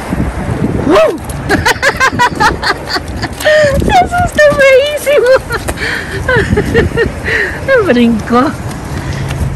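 A small dog whines and yelps excitedly.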